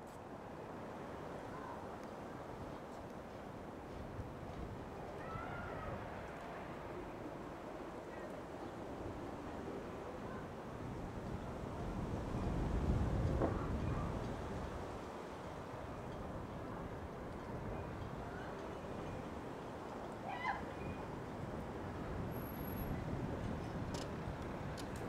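Wind blows outdoors, rumbling against the microphone.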